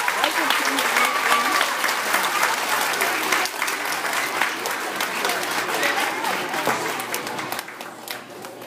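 Children applaud and cheer loudly in an echoing hall.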